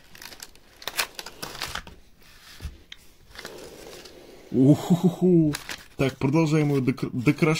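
Thin card crinkles and crumples as it is pressed flat.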